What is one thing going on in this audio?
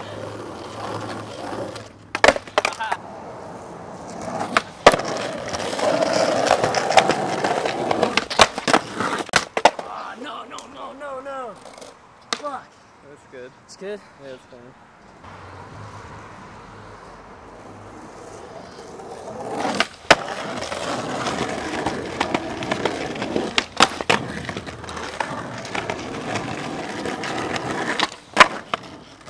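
Skateboard wheels roll and rumble over rough pavement.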